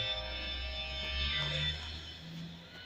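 Loud music plays through speakers.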